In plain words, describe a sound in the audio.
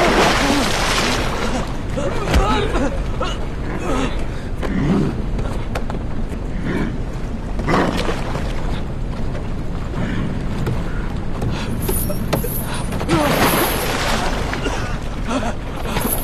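Water rushes and churns steadily.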